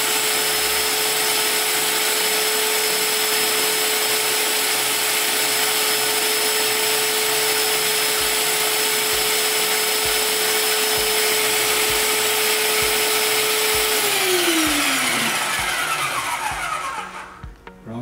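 A power tool's motor whirs steadily and then winds down.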